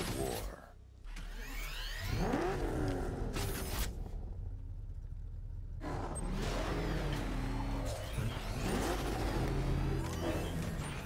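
A powerful engine roars and revs.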